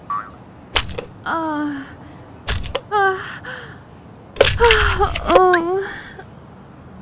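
A soap dispenser squirts liquid soap.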